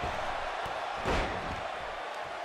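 A body slams hard onto a wrestling ring mat.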